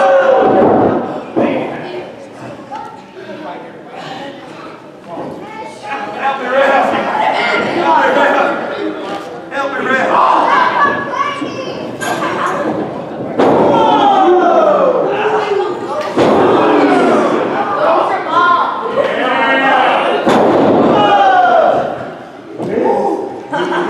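A crowd of spectators shouts and cheers nearby in an echoing hall.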